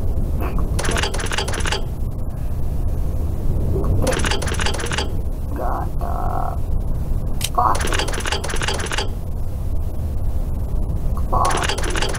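A heavy stone dial turns with a rhythmic grinding clatter.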